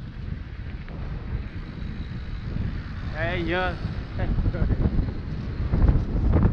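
Bicycle tyres roll and crunch over a rough road.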